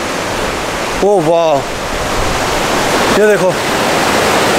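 A man speaks close by, in short animated phrases.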